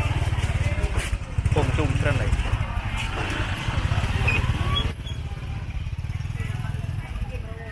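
A motorbike engine hums close by.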